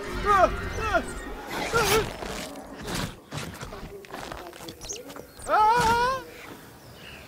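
A small dinosaur shrieks and chirps in sharp, rising cries.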